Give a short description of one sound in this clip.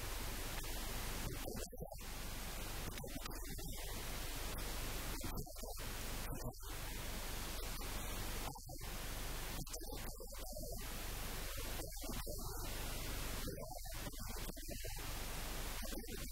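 A middle-aged man asks questions into a nearby microphone.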